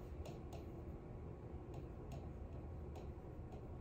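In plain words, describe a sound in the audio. A marker taps and squeaks on a board.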